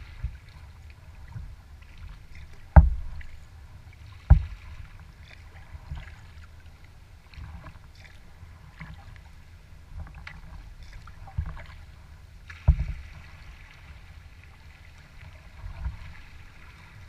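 Water laps and splashes gently against a kayak's hull.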